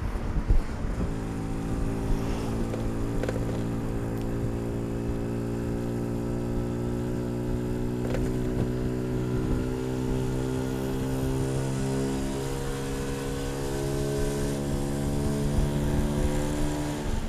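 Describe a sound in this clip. An engine hums steadily close by.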